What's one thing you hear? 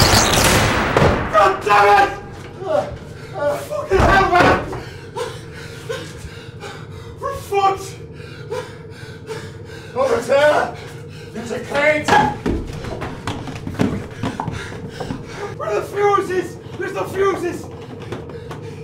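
Men speak tensely and urgently, close by.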